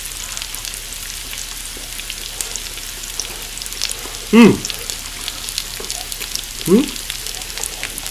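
A young man chews food noisily.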